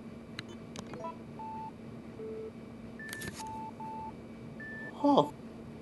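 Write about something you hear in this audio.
Short electronic beeps and tones play in a rising and falling sequence.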